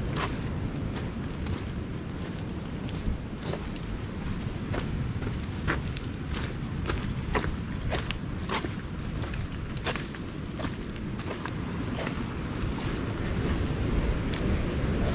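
Rain falls steadily on leaves.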